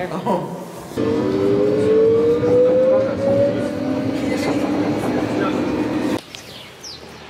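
A train hums and whines as it speeds up.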